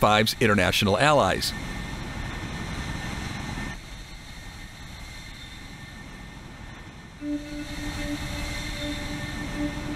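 A jet engine whines as a fighter jet taxis.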